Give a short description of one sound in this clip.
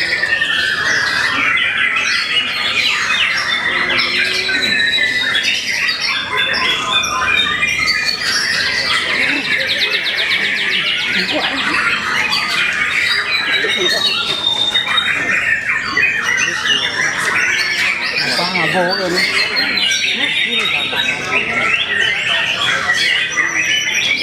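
Caged songbirds sing loud, varied, rapid chirping songs close by.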